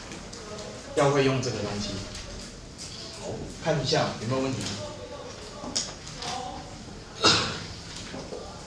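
A man speaks calmly nearby, lecturing.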